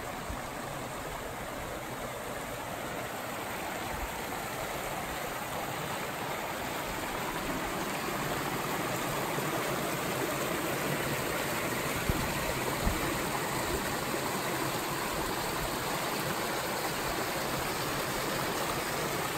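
A shallow stream rushes and splashes steadily over rocks outdoors.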